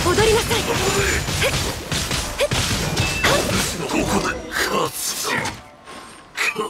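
Sword strikes and magical blasts crash loudly in quick succession.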